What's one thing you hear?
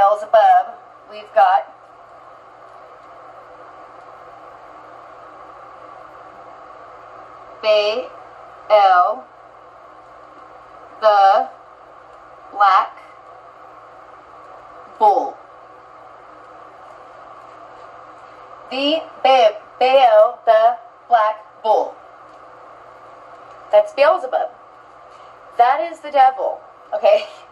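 A woman speaks calmly in short phrases, close to a microphone.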